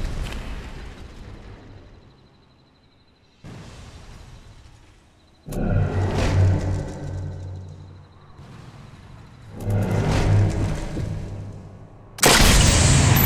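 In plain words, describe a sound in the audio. Fires crackle and roar after explosions.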